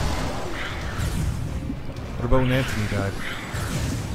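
A huge creature roars and growls loudly.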